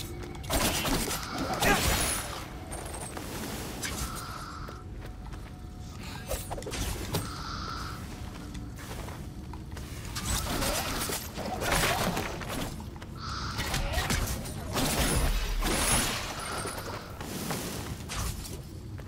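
Blades whoosh and slash in quick swings.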